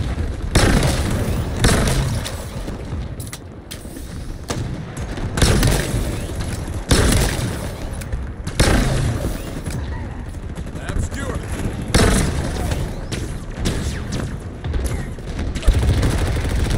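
Explosions boom heavily.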